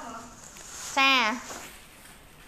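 A young woman gives a short high-pitched shout.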